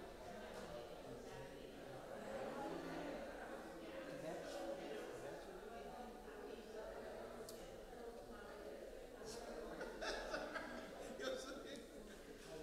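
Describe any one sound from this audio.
A crowd of people murmurs and chats quietly in a large echoing hall.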